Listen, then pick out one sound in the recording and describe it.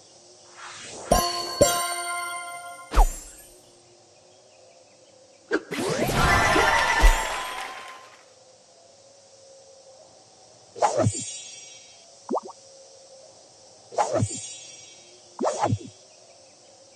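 Bright chiming game jingles ring out in short bursts.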